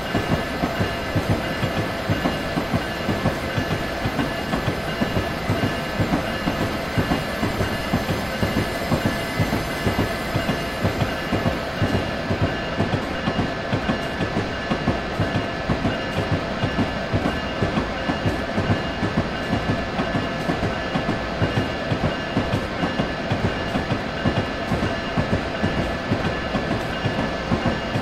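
A train's electric motor hums steadily.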